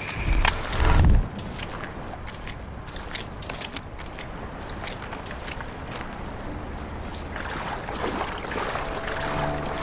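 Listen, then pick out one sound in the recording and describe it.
Water splashes as someone wades through a stream.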